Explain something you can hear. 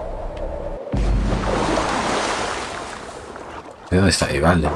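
Water splashes as a character swims.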